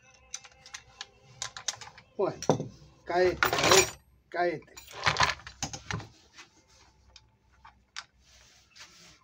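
Metal parts of a sewing machine click and clatter as they are handled.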